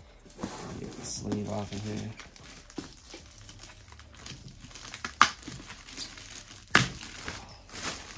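Plastic wrap crinkles and rustles as hands pull it off a box.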